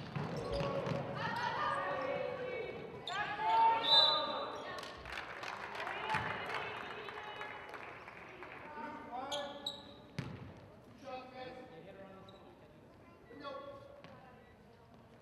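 Young women shout and call out to each other in an echoing gym.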